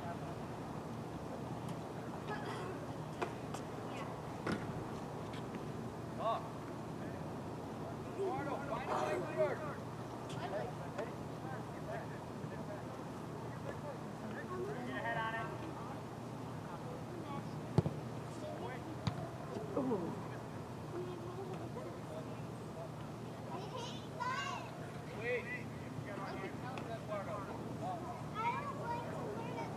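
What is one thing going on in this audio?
Soccer players shout to each other in the distance across an open outdoor field.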